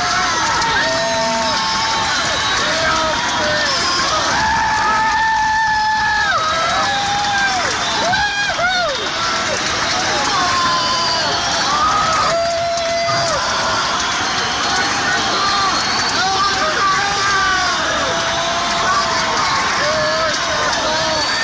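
A rock band plays loudly in a large echoing hall.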